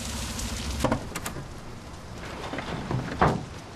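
A truck door clicks open.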